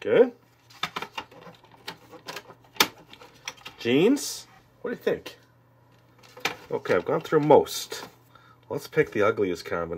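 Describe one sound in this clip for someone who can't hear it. Stiff cardboard pieces tap and rustle as they are handled.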